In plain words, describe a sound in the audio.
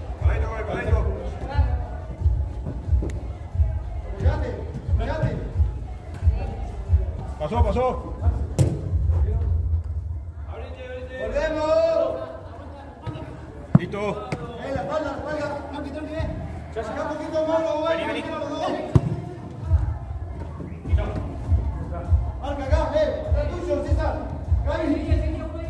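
Men shout to each other in an echoing indoor hall.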